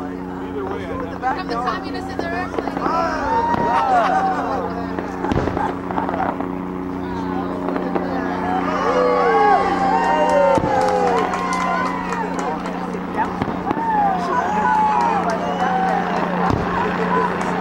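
Fireworks burst with dull booms in the distance.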